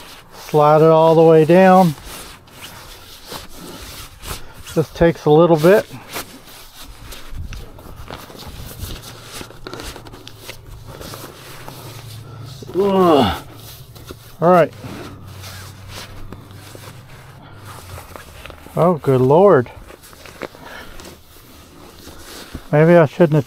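Fabric rustles and crinkles as it is pulled and handled up close.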